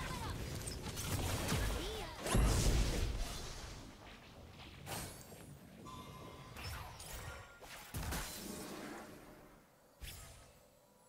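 Computer game fight effects whoosh and clash.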